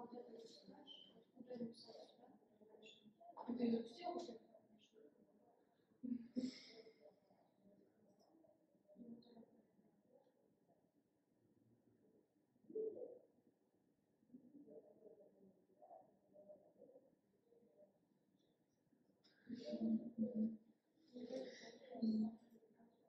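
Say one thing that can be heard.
A woman speaks quietly nearby.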